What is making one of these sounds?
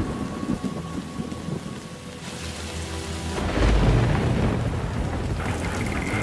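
Rain falls steadily on wet ground.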